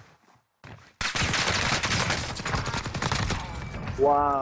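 Rapid gunfire rattles in a long burst.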